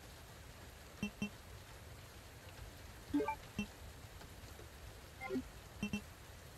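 Short soft beeps sound as game menu options are selected.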